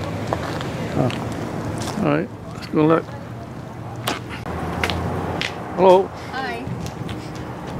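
A young woman speaks casually close by, outdoors.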